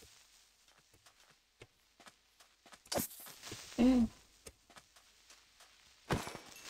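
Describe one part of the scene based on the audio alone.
Footsteps patter steadily on soft ground.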